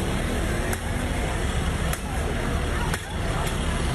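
A metal pole strikes a bus with sharp clangs.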